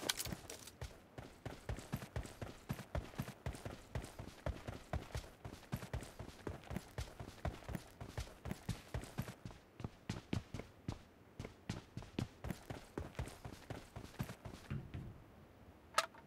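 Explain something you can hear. Footsteps thud quickly and steadily on hard ground.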